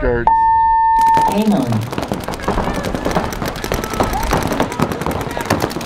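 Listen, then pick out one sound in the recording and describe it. Paintball markers fire in quick popping bursts.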